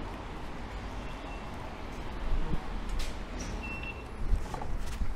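A ticket gate beeps sharply.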